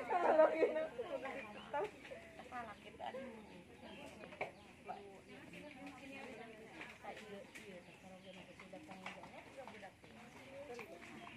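Several women chat and laugh nearby.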